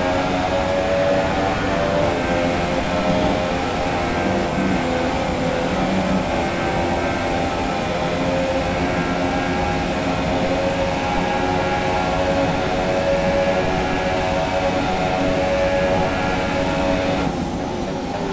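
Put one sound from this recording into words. A racing car engine screams steadily at high revs.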